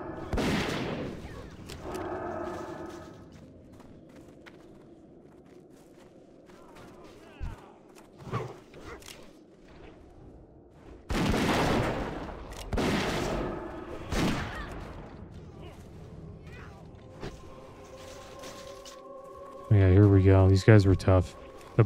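Game weapons clash and spells burst in short bursts.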